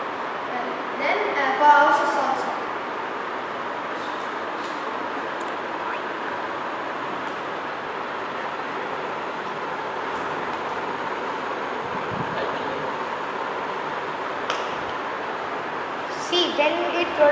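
A boy speaks nearby.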